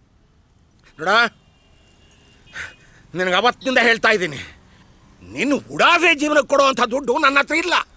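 An elderly man shouts with animation, close by.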